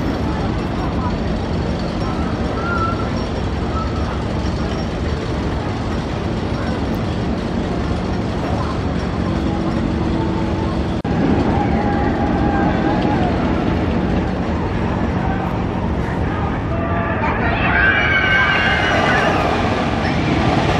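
A roller coaster train rumbles and clatters along its track.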